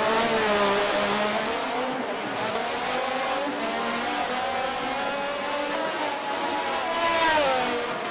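A racing car engine whines loudly, its pitch rising and falling as it shifts gears.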